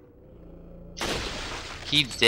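A rifle fires a single sharp shot.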